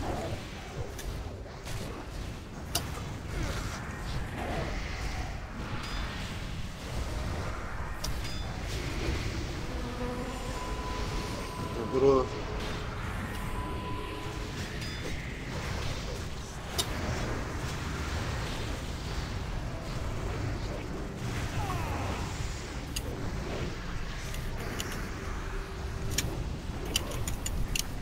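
Spell effects crackle and blast in a busy game battle.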